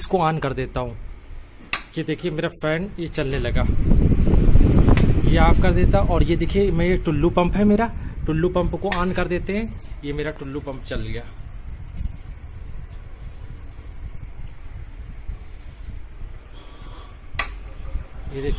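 A wall switch clicks.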